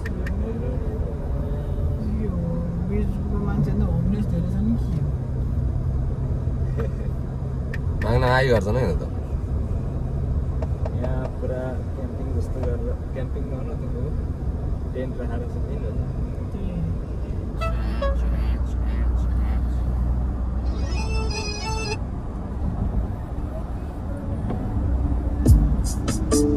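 A car engine and tyres rumble steadily on the road.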